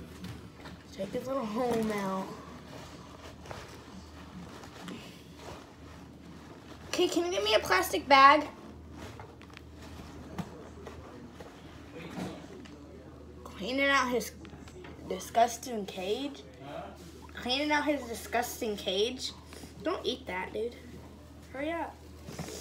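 A girl talks with animation close by.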